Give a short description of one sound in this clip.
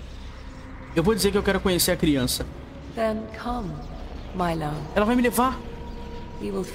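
A young woman speaks softly and tenderly.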